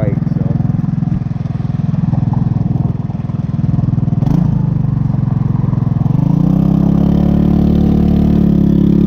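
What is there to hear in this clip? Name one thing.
A small scooter engine idles with a rapid putter, then revs up and drones steadily.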